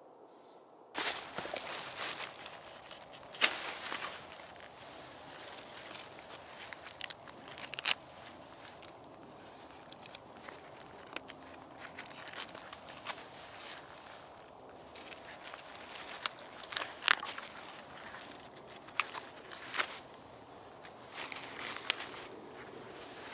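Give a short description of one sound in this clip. A knife scrapes and shaves bark from a branch.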